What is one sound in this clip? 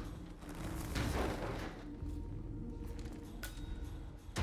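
A metal door bangs shut.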